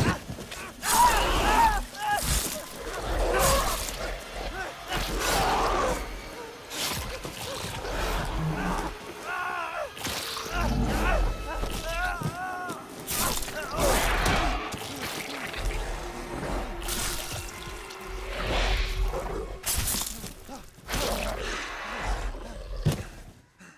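A monster roars and snarls loudly.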